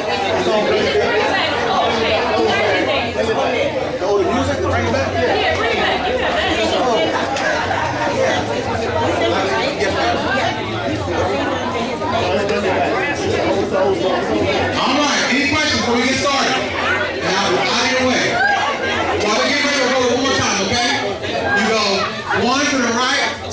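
Feet shuffle and tap on a wooden floor.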